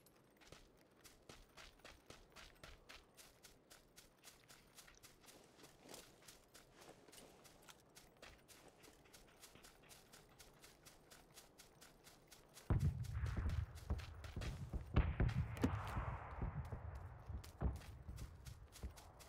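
Quick footsteps swish through dry grass.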